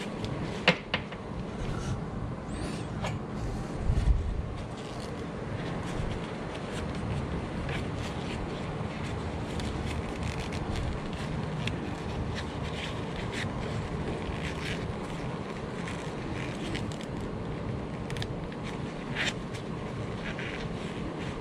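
Stiff electrical wires rustle and click as they are handled and bent.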